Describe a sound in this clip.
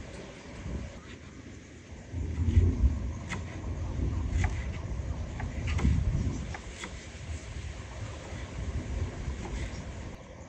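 A knife chops herbs on a wooden board with quick taps.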